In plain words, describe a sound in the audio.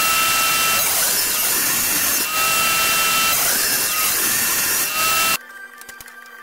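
A table saw whines loudly as it cuts through a board.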